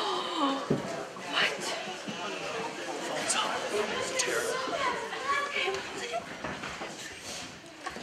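An audience of men and women murmurs and chatters softly in a room.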